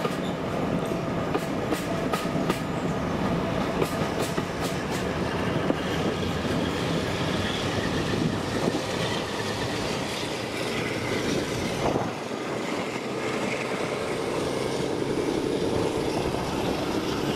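Railway carriages rumble and clatter steadily along the track.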